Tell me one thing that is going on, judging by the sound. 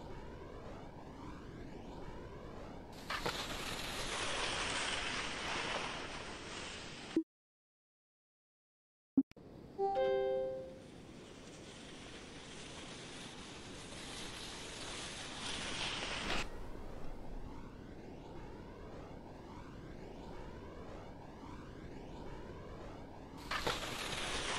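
Wind rushes past a ski jumper in flight.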